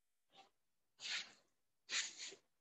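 A woman breathes out slowly and audibly.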